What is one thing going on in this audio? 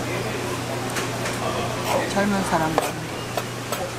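A knife slices through fish.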